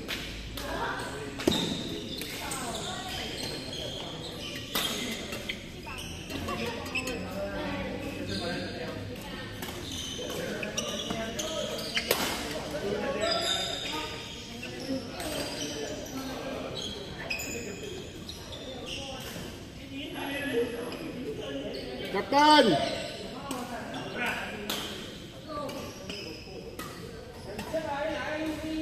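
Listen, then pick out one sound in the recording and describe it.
Many people chatter and call out across the hall.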